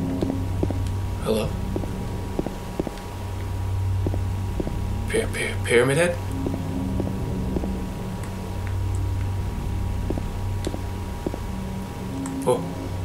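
Footsteps tread steadily on hard ground.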